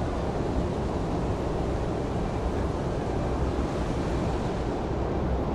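Water laps gently in a pool.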